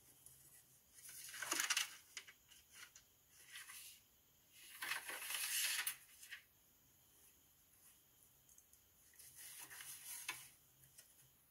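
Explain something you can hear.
Packaging paper rustles and crinkles through a small phone speaker.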